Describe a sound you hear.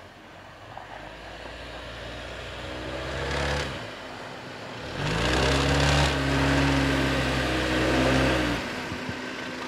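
An engine revs as a vehicle climbs through snow outdoors.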